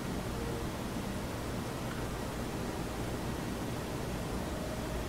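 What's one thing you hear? A man breathes heavily in his sleep.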